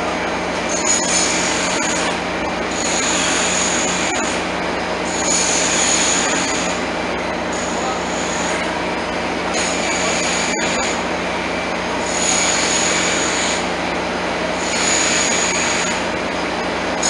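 A train engine idles with a steady low hum.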